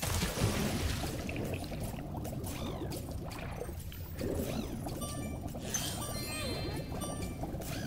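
Water splashes and bubbles around a diving creature.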